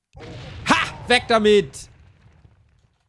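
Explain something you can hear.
A man speaks loudly and excitedly into a microphone.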